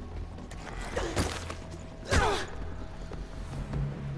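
A body thuds onto a hard floor.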